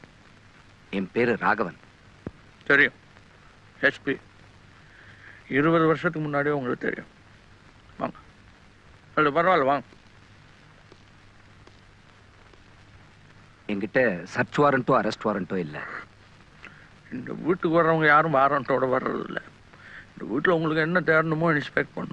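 A man speaks in a low, serious voice, with long pauses.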